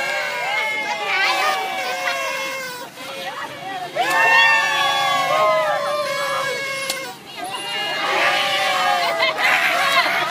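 A crowd of young people sings loudly together outdoors.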